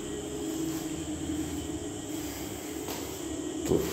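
Footsteps thud down a staircase.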